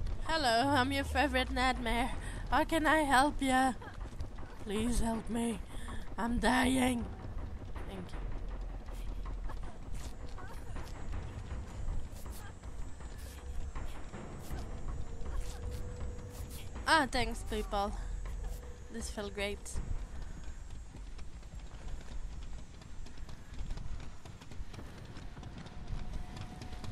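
Footsteps run through rustling grass.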